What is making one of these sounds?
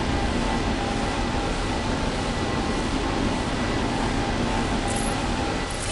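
Laser beams buzz and crackle steadily.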